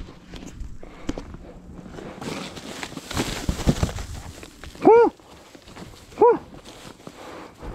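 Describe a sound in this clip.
Foil-backed bubble wrap crinkles as it is handled.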